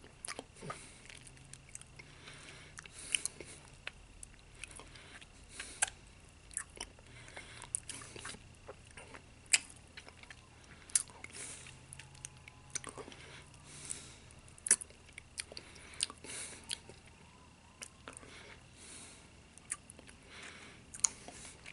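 A toothpick clicks and scrapes against teeth close up.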